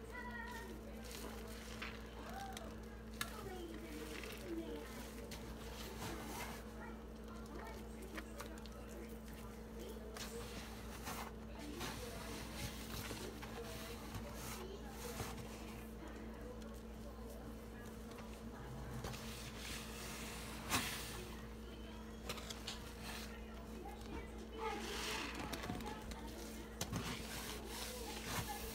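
Hands squish and squeeze wet foam.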